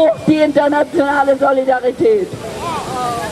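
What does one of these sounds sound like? A woman chants loudly outdoors.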